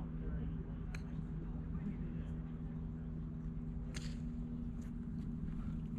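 Golf clubs strike balls with sharp clicks at a distance.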